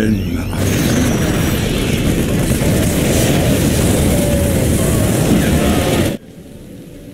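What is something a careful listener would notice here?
Game laser blasts and explosions roar loudly and continuously.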